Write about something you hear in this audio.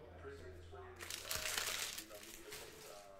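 Trading cards slide and rustle in a man's hands.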